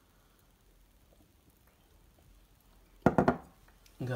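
A glass is set down on a hard tabletop with a light knock.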